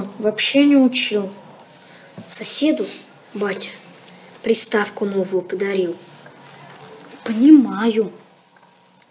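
A young boy talks quietly nearby.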